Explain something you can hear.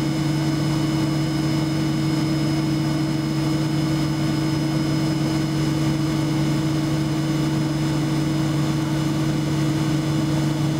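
A jet engine drones loudly and steadily from inside an airplane cabin.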